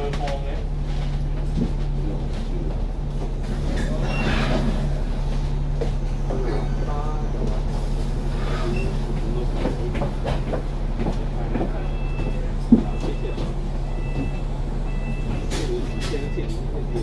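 A bus engine hums steadily close by.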